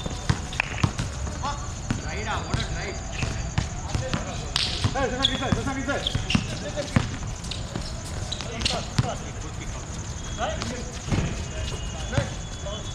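A basketball bounces on a hard court.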